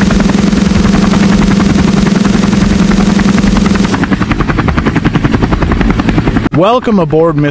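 A helicopter's rotor thumps rapidly and loudly, then fades.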